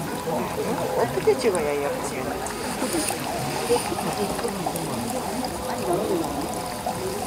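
Water trickles and splashes gently into a small pool.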